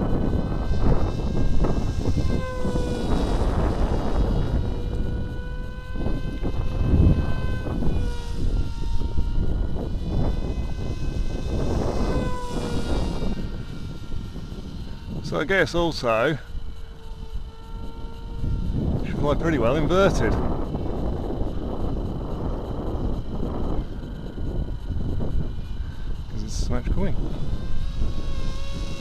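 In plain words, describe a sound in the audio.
Wind blows and rumbles against the microphone outdoors.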